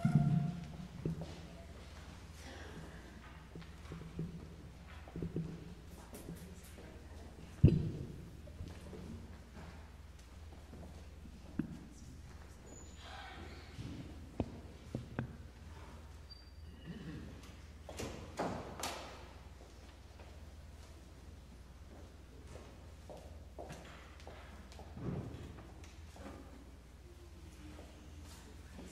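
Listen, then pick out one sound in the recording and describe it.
Footsteps shuffle softly across a floor in a large echoing hall.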